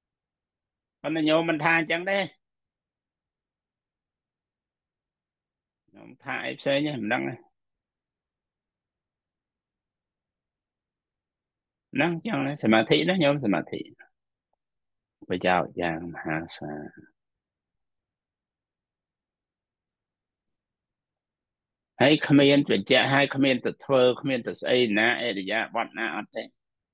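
A man speaks calmly through an online call, with long pauses between phrases.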